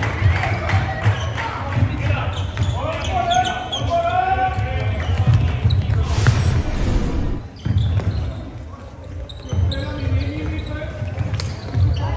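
Young players call out to each other across the hall.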